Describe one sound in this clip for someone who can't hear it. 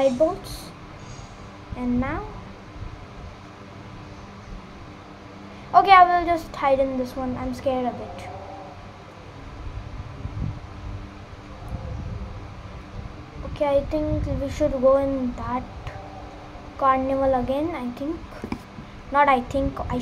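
A young girl speaks nearby in a high voice, in short bursts.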